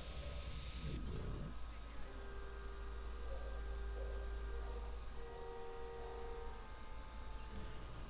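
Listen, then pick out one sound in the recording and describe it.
A small drone's propellers whir steadily.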